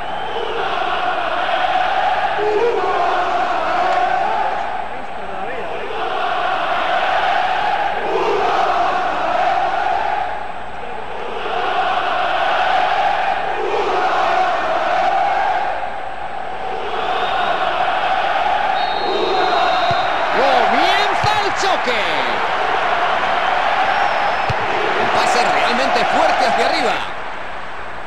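A large crowd chants loudly in rising and falling waves.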